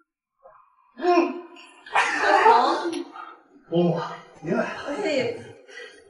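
Several men and women talk and greet each other with animation.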